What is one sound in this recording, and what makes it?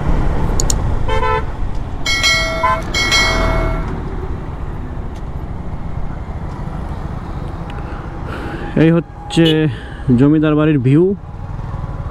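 Vehicle horns honk several times nearby.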